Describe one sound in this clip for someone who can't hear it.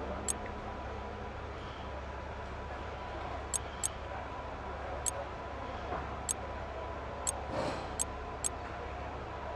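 Short sharp menu clicks sound every second or so.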